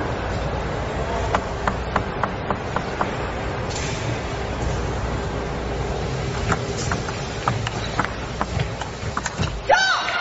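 A ball clicks back and forth on a table tennis table.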